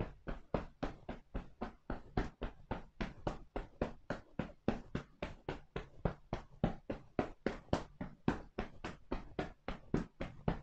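Hands pat and tap rapidly on a person's back in a fast, even rhythm.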